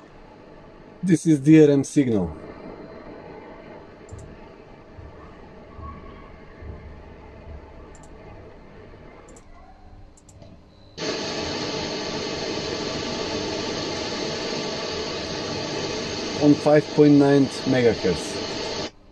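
A radio receiver gives off a sliding whistle.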